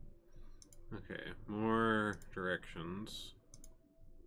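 A man speaks briefly and quietly into a close microphone.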